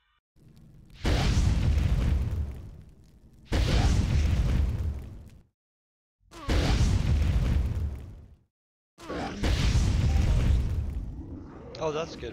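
Loud roaring blasts burst out again and again, each fading away.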